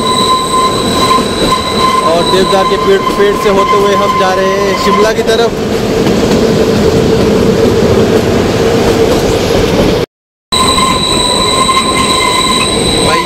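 A train rumbles and clatters steadily along the track.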